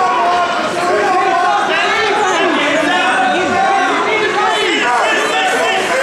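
Men and women shout and cheer loudly in an echoing hall.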